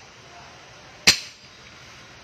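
A metal part knocks once as it is set down on a hard floor.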